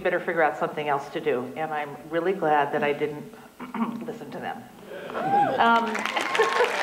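A woman speaks warmly through a microphone in a large hall.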